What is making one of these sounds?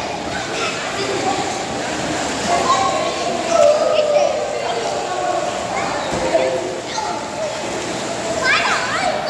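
Young children shout and squeal with excitement in an echoing hall.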